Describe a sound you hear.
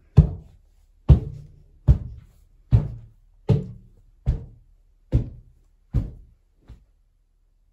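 Someone knocks steadily on a wooden door, over and over.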